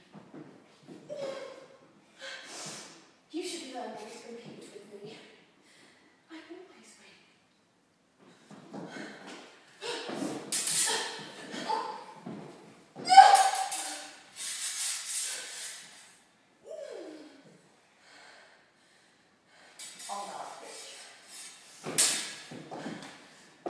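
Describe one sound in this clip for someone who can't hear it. A young woman talks in bursts.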